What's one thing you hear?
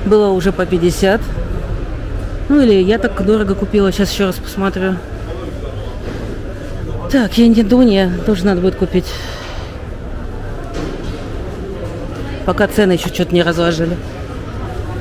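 A man speaks loudly close by, with animation.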